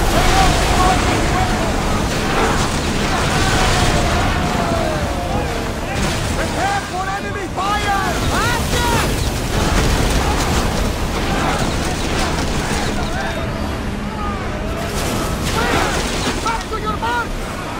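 Fire roars on a burning ship.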